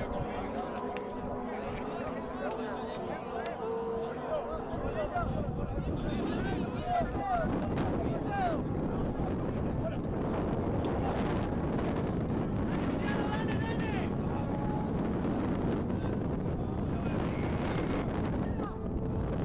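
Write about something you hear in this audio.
A crowd of spectators nearby shouts and cheers outdoors.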